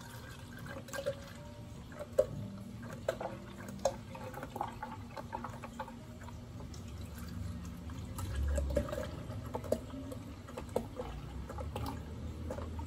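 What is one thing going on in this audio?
Small knocks and taps ring out against plastic.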